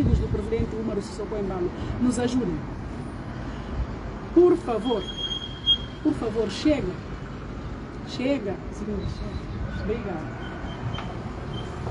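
A woman speaks firmly into a close microphone.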